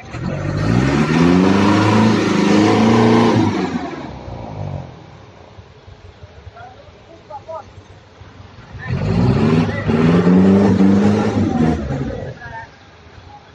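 A truck engine revs loudly.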